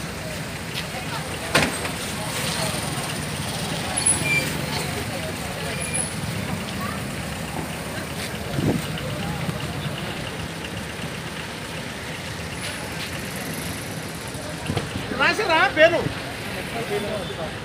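Cars drive past on a street outdoors.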